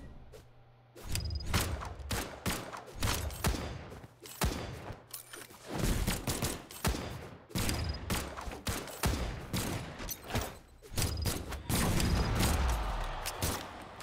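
Punches and hits land in quick bursts of video game fighting.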